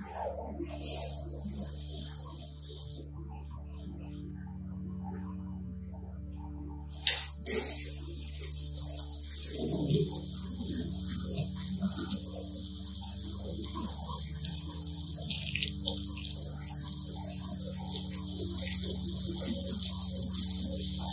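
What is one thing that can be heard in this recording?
Water sprays from a hose nozzle with a steady hiss.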